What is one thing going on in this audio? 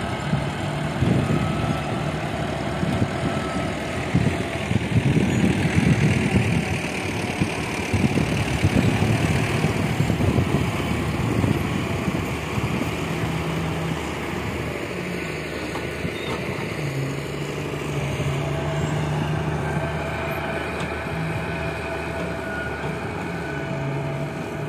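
Heavy machinery engines rumble steadily in the open air.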